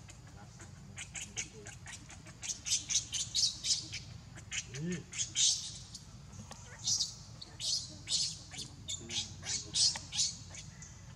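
A baby monkey squeals shrilly again and again, close by.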